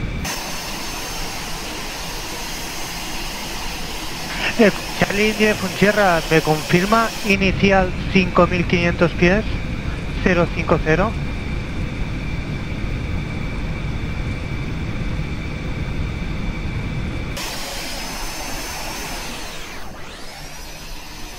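A jet engine idles with a steady whine.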